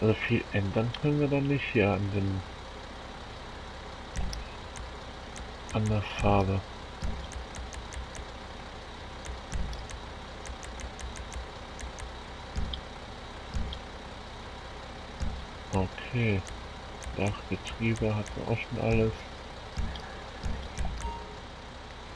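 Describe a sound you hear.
Soft electronic clicks tick in quick runs.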